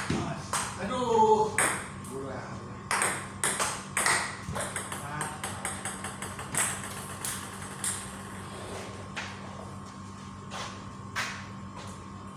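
A ping pong ball clicks back and forth off paddles and a table.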